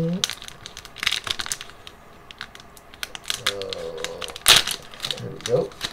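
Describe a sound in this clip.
A foil wrapper tears open.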